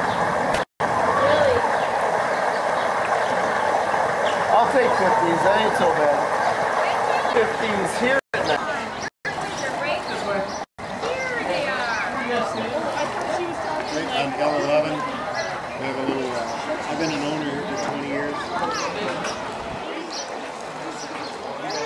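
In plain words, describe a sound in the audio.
A crowd of women, men and children chatter and call out close by.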